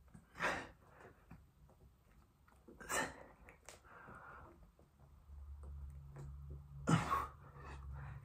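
A man exhales sharply while exercising.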